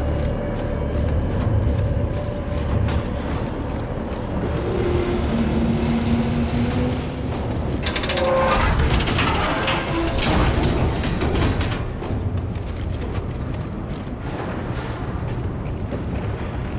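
A strong wind roars steadily outdoors.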